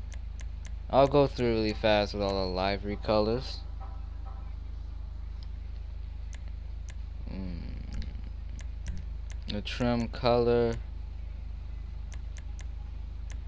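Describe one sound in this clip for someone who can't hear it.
Short soft menu clicks tick again and again.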